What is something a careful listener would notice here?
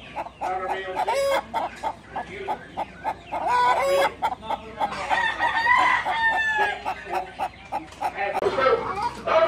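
Many caged chickens cluck and call close by.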